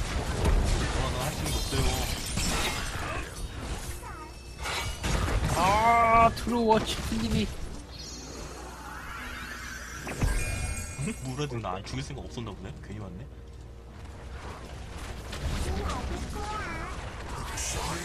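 Spells and weapons crackle, blast and clash in a video game battle.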